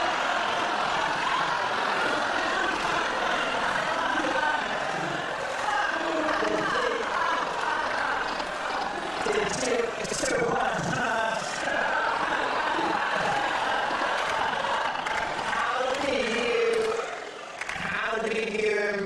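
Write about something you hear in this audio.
A studio audience laughs.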